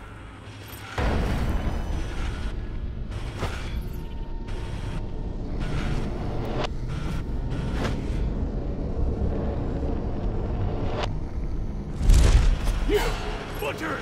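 A deep whooshing rush sweeps past in short bursts.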